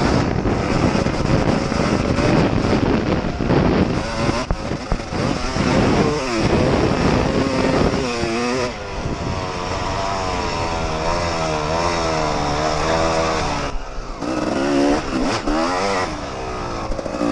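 A dirt bike engine revs loudly up close, rising and falling in pitch.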